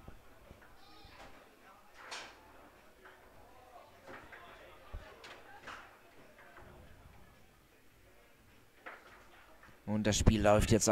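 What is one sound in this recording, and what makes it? Foosball rods clack as players spin and slide them.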